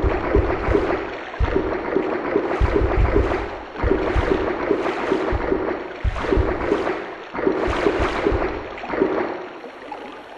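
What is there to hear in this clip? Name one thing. Footsteps thud steadily along a stone corridor.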